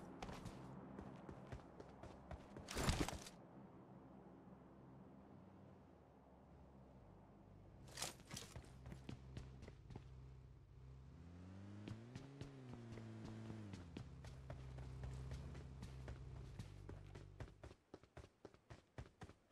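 Quick footsteps thud on hard ground as a person runs.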